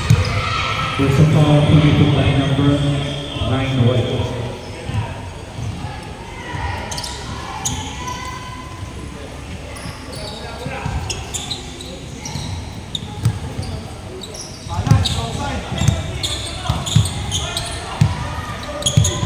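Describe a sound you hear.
Young men shout to each other during play.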